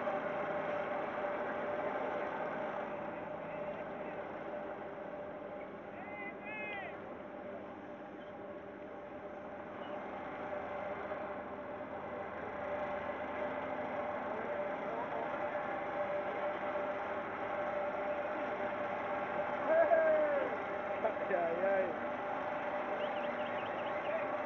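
A boat engine hums steadily on the water.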